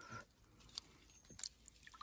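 Water splashes as a hand stirs it.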